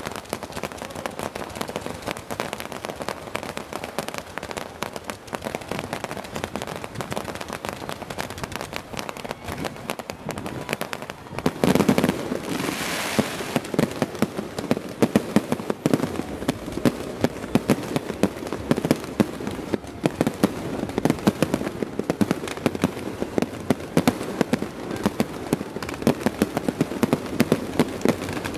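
A large crowd cheers and screams outdoors.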